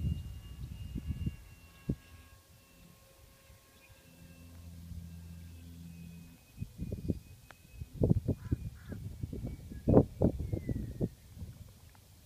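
A small model plane engine buzzes high overhead and slowly fades.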